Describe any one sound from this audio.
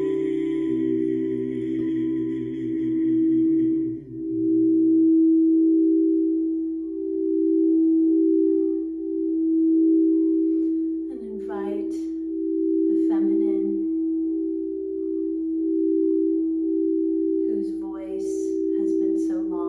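Singing bowls ring with a steady, humming tone that swells and fades.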